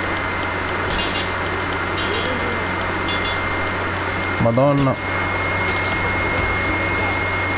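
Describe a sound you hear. Swords clash and ring sharply.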